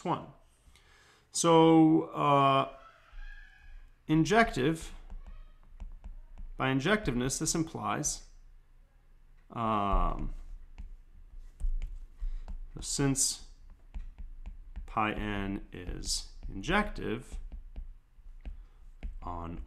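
A man speaks calmly and slowly into a close microphone, with pauses.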